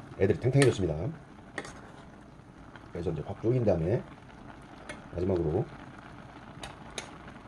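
A metal spoon scrapes and clinks against a pot while stirring beans.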